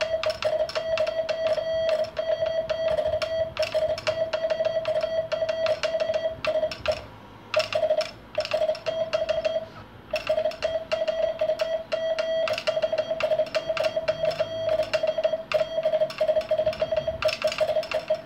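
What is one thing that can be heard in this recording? A beeping tone sounds in short and long bursts of Morse code.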